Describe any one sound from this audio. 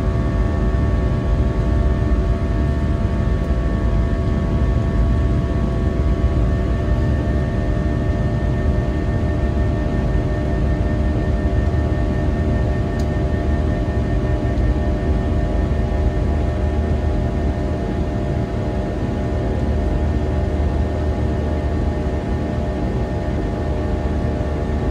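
An aircraft engine drones steadily with a low roar and a steady hum.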